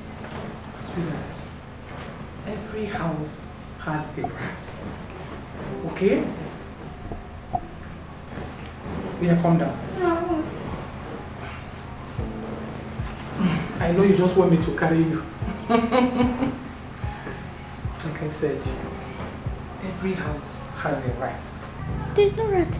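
A woman speaks sternly and with emotion, close by.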